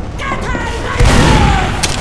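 A shotgun blasts.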